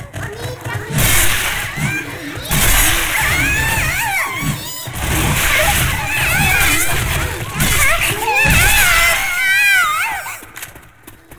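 A blade swings and slices wetly into flesh several times.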